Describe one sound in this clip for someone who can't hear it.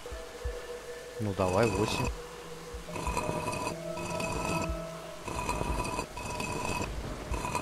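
A stone dial clicks as it turns.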